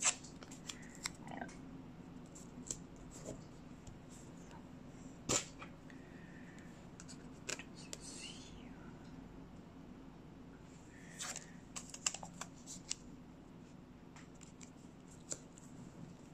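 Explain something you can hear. Masking tape crinkles as it is pressed down and peeled.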